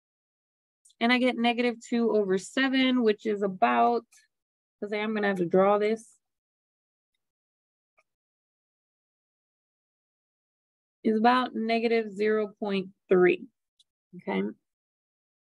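A woman speaks calmly into a microphone, explaining.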